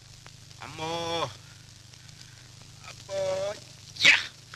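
A man groans and moans in pain nearby.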